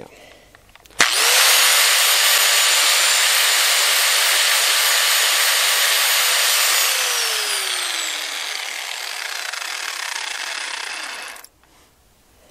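An angle grinder whines loudly at high speed, then slowly winds down.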